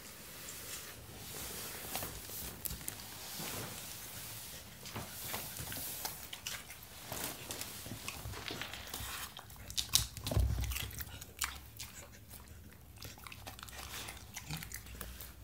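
A dog crunches and chews on a bell pepper.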